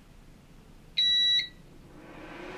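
A machine beeps once with a short, high tone.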